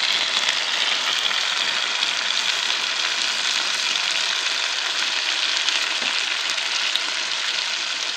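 A metal skimmer scrapes and stirs mushrooms in a cast-iron cauldron.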